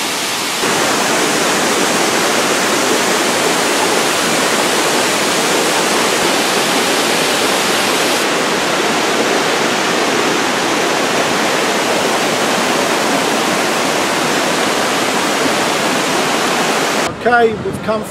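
Water rushes and splashes loudly down rocky falls.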